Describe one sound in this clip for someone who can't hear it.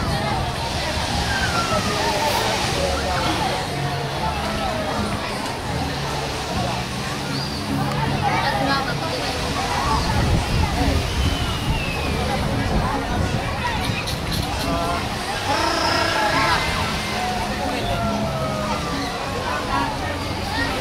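Children shout and squeal while playing in the water.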